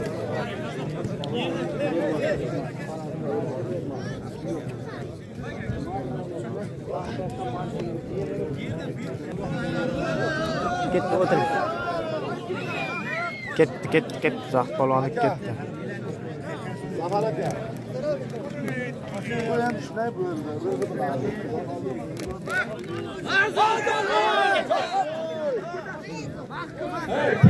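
A large crowd of men chatters and shouts outdoors.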